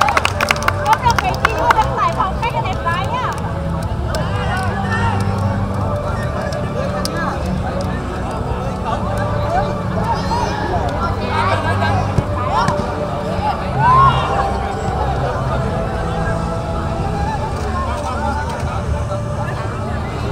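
Several young men chatter and call out loudly outdoors.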